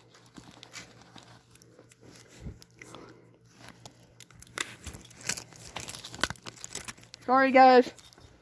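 Something is handled close by with rustling and soft knocks.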